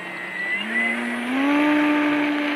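A model plane's engine whines, rising in pitch as it speeds up for takeoff.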